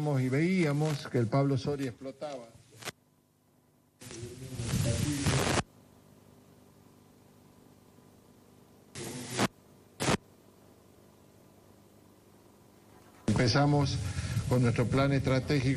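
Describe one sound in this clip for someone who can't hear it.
An elderly man speaks calmly through a microphone and loudspeakers outdoors, with pauses.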